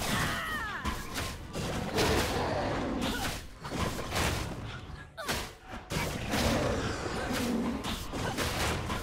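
Video game combat sound effects clash and whoosh.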